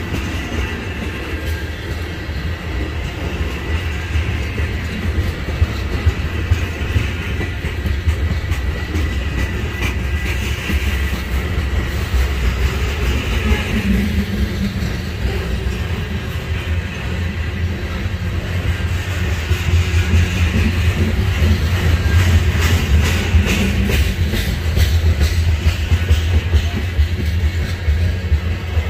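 A freight train rumbles past close by on the tracks.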